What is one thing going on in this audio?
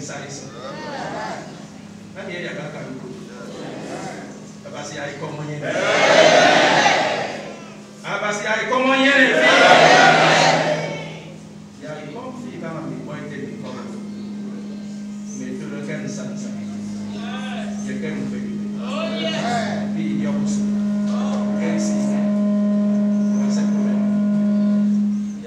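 An elderly man speaks fervently into a microphone, heard through loudspeakers in an echoing hall.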